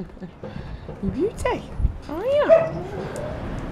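A puppy whimpers in high, sliding whines.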